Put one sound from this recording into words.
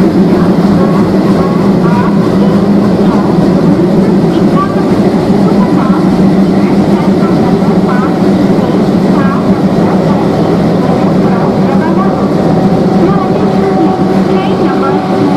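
A diesel locomotive engine rumbles and thumps loudly close by as a train rolls past.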